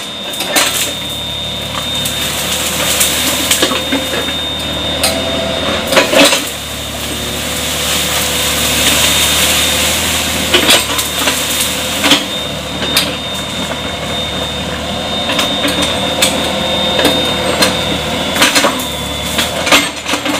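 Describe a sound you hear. Branches snap and crack as an excavator pushes through plants.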